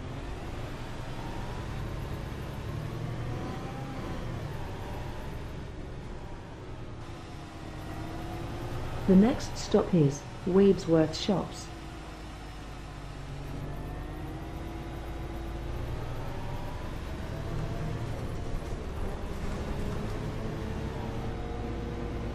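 A bus engine hums and rises and falls in pitch as the bus drives.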